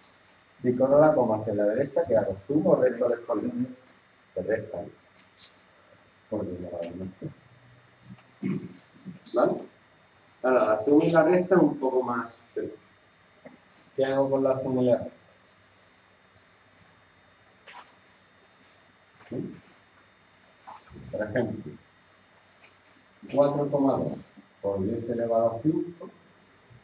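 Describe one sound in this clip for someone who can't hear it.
A man speaks calmly and explains, close by.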